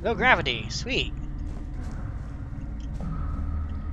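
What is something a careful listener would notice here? Soft footsteps patter on the ground.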